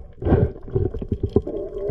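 Air bubbles gurgle and bubble close by underwater.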